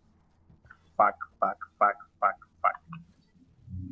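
A young man speaks close into a microphone.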